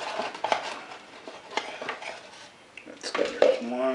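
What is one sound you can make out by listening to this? A knife scrapes across the top of a scoop.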